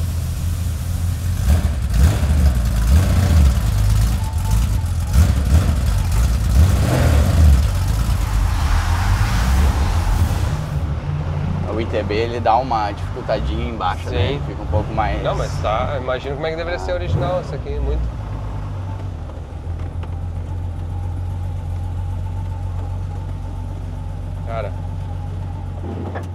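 A sports car engine rumbles loudly and unevenly.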